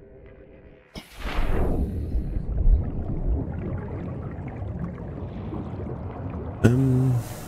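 Underwater ambience rumbles low and murky.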